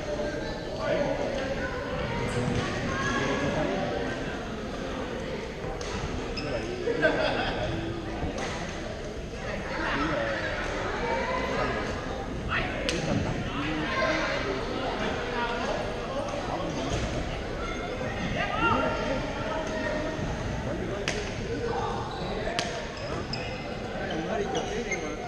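Shuttlecocks are struck with rackets, with sharp pops echoing in a large hall.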